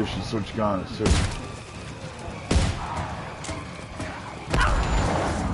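Gunshots bang loudly several times.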